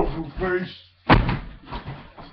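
A body slams onto a mattress with a thud.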